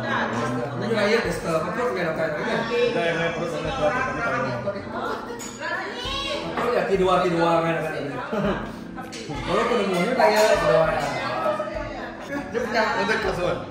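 Several women and men chat over one another.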